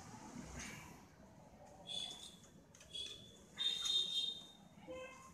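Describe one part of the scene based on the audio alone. Hands handle a plastic stand, which clicks and rattles.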